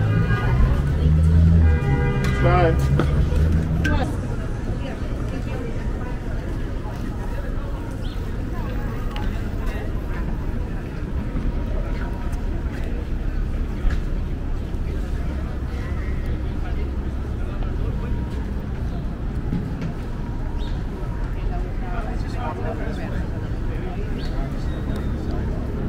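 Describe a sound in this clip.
Traffic rumbles steadily along a busy city street outdoors.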